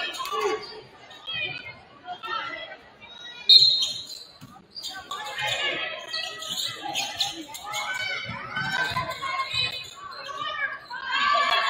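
Spectators and players call out and chatter in a large echoing gym.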